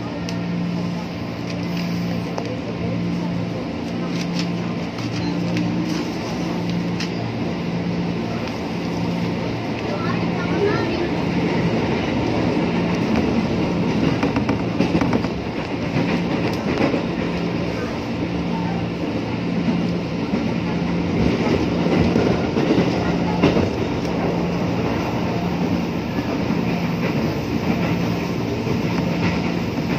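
A train's motor hums with a steady, pulsing drone.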